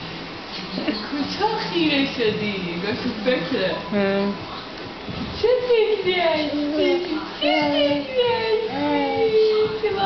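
A baby babbles and coos nearby.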